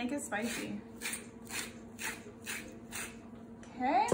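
A spice shaker rattles in quick, even shakes.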